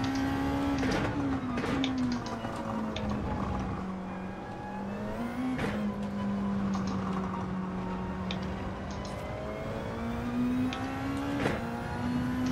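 A racing car's gearbox clicks sharply on gear changes.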